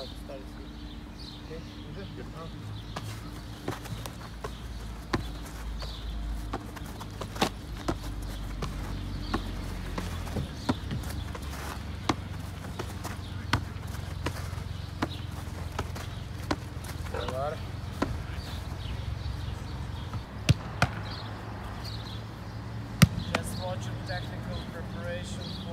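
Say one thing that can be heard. A football thuds against gloved hands, again and again.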